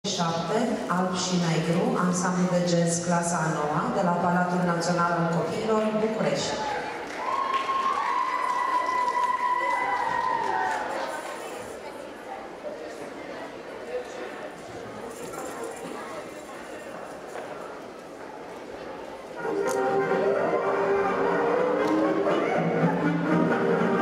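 A band plays lively music in a large echoing hall.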